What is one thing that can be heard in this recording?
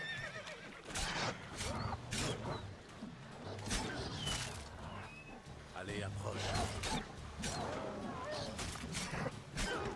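A sword strikes with sharp impacts.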